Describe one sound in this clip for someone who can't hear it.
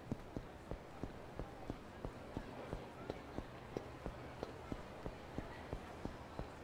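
Quick footsteps run on a hard pavement.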